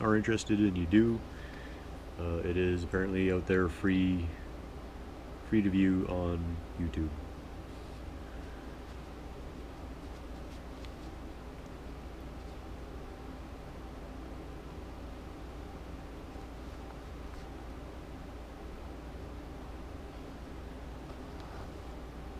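Thread pulls softly through fabric.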